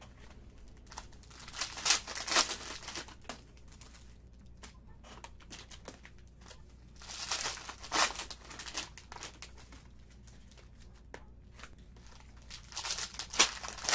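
Plastic wrappers crinkle and tear as card packs are ripped open.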